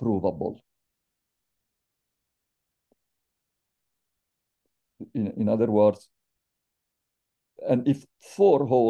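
An older man speaks calmly into a microphone, with pauses.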